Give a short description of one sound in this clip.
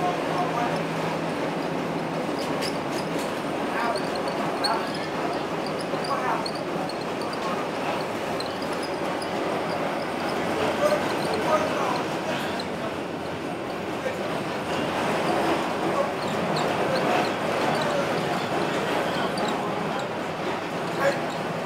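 Tyres roll on pavement.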